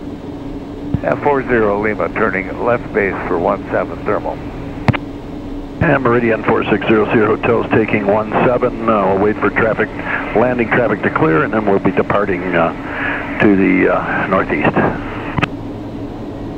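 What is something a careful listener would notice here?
A man speaks calmly over a headset radio.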